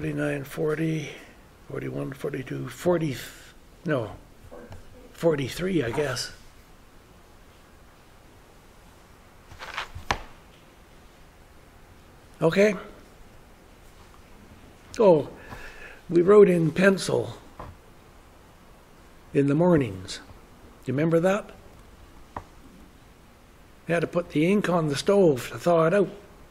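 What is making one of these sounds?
An elderly man speaks calmly in short phrases with pauses, close by.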